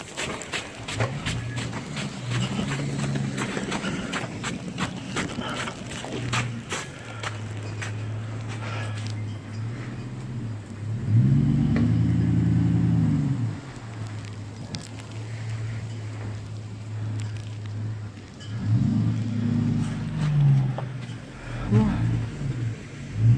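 A pickup truck engine idles and revs up loudly.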